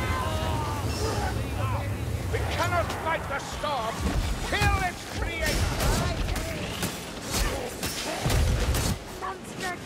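A crossbow fires bolts with sharp snaps.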